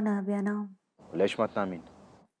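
A young man speaks quietly on the phone.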